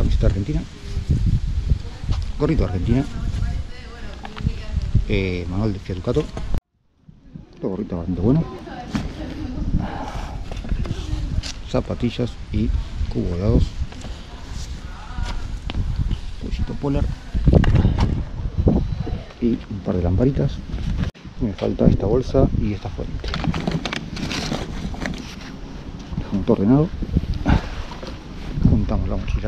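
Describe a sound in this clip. Items rustle and knock as they are handled.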